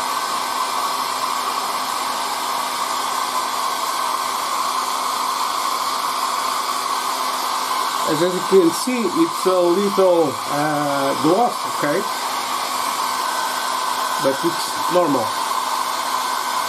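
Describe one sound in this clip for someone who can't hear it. A hair dryer blows with a steady, loud whir.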